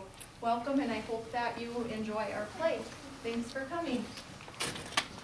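A woman speaks calmly to an audience.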